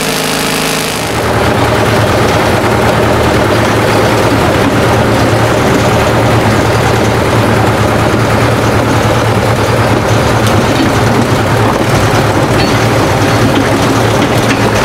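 A large diesel engine rumbles loudly and steadily.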